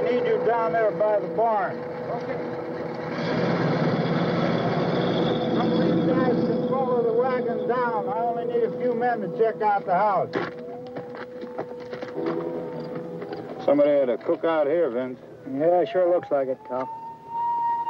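Men talk outdoors.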